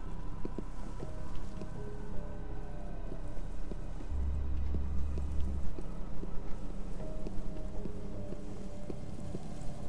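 Soft footsteps pad slowly on pavement.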